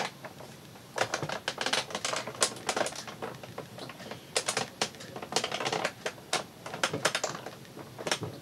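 A hand-cranked machine rolls plates through with a creaking, grinding rumble.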